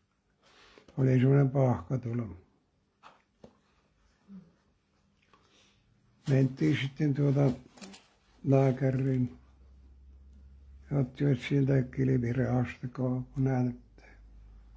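An elderly man speaks calmly and slowly into a microphone, close by, with pauses.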